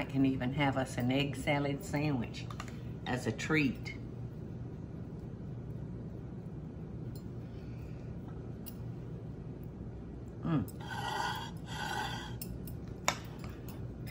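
A spoon taps against a ceramic plate.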